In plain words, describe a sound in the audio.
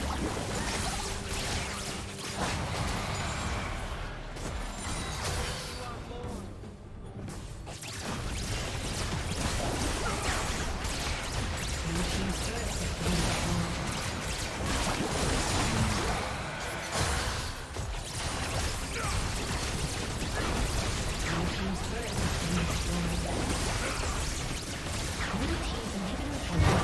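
Game spell blasts and hits crash and whoosh during a fight.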